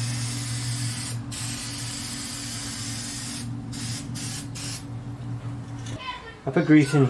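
Spray paint hisses from an aerosol can.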